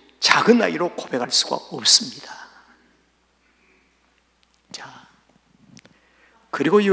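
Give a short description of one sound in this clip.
An elderly man speaks calmly into a microphone in a reverberant hall.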